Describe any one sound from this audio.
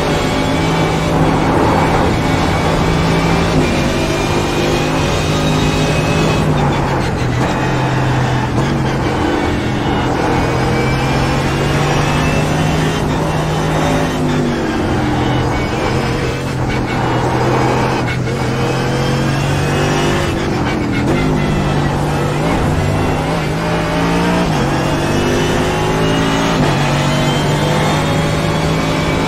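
A racing car engine roars loudly, rising and falling in pitch as it speeds up, brakes and shifts gears.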